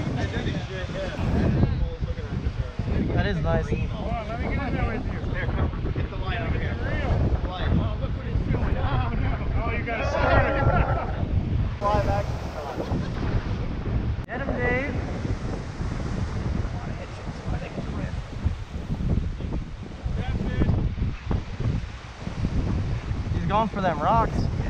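Several men talk and call out excitedly nearby.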